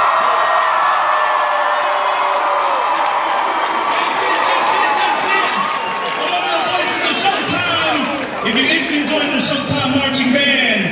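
A large crowd cheers and screams loudly in an echoing hall.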